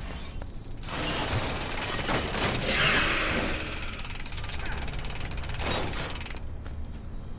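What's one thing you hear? Plastic bricks clatter as they snap together into a build.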